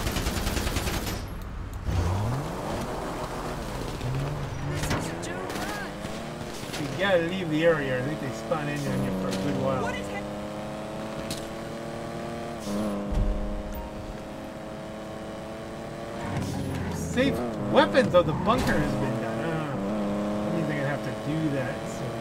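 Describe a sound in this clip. A car engine roars and revs up and down as it speeds along.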